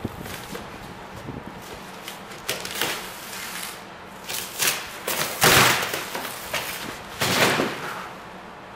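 Foam crunches and tears as a large shell is broken open from inside.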